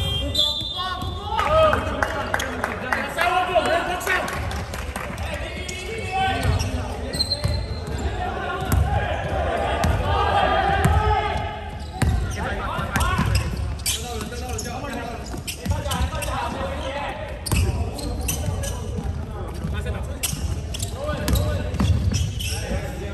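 Players and spectators call out and chatter in an echoing hall.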